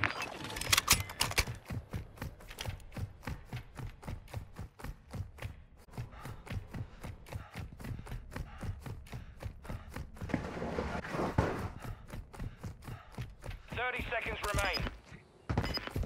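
Footsteps tap quickly across a hard floor.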